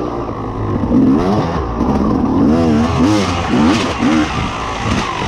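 Tyres crunch over a dirt trail.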